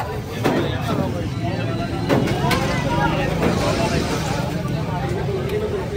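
A ladle scrapes and clinks against a metal pot.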